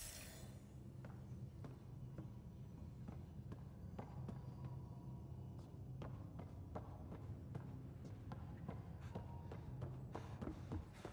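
Footsteps tap quickly on a hard metal floor.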